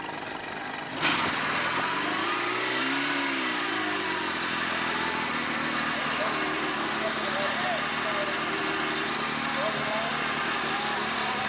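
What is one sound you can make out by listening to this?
An outboard motor starts loudly and runs close by.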